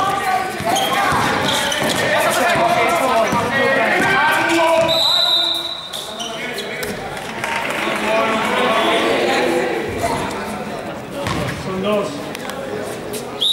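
Voices of young players and onlookers shout and chatter in a large echoing hall.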